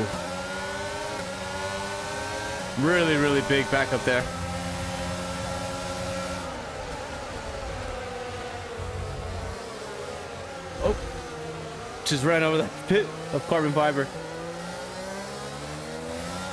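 A racing car engine whines steadily, rising and falling as gears change.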